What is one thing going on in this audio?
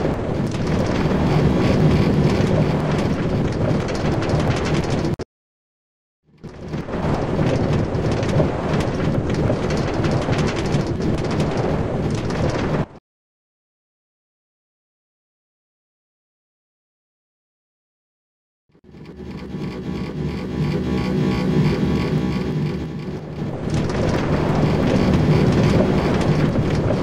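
A minecart rattles and rumbles steadily along metal rails.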